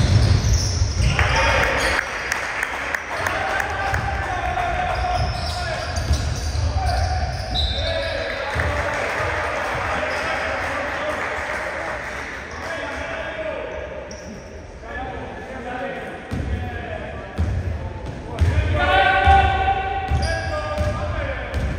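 A basketball bounces on the court with dull thumps.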